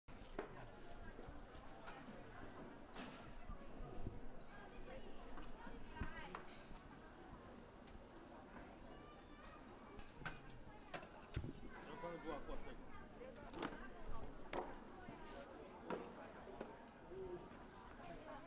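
A crowd murmurs.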